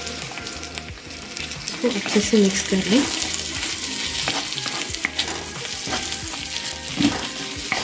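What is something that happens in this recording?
A wooden spatula scrapes and stirs onions in a wok.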